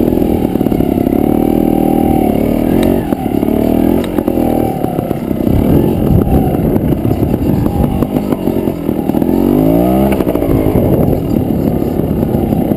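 A dirt bike engine revs hard close by, its pitch rising and falling.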